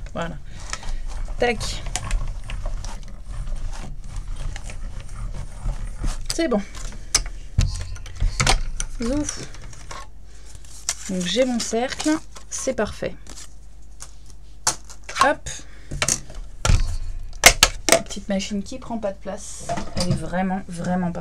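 Plastic plates clack and slide against each other.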